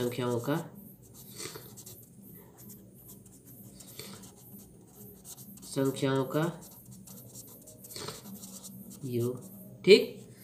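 A marker scratches across paper.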